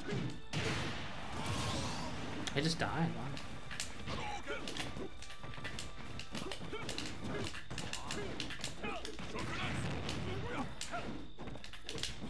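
Video game punches and hits thud and crack in quick bursts.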